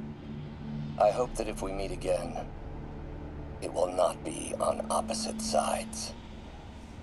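A recorded voice plays in short bursts from a small voice recorder.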